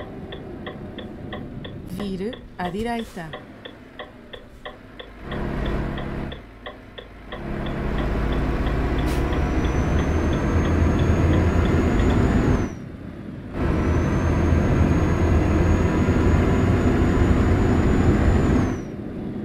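A truck engine drones steadily, growing louder as it speeds up.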